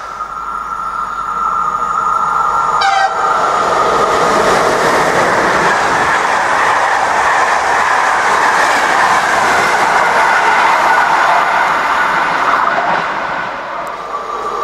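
A train approaches and rolls past with a swelling rumble and rush.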